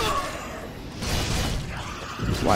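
A magic spell bursts with a whooshing roar.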